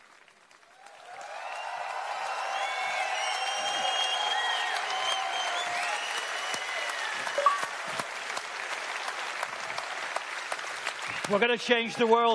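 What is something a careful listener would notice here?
A large crowd cheers and whistles in a big hall.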